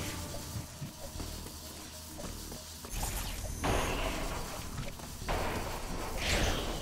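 Electronic weapon blasts crackle and boom in quick bursts.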